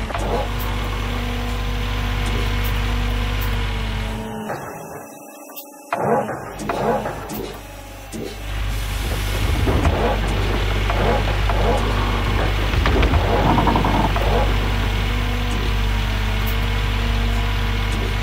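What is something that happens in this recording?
Dirt and gravel scrape and tumble from an excavator bucket.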